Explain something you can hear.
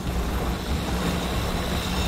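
A jetpack thruster roars in a low, steady rush.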